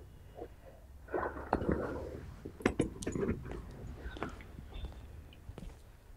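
A suitcase bumps and rattles as a man lifts and handles it.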